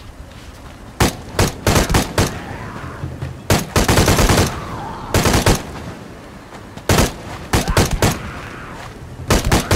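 A pistol fires in rapid bursts of shots.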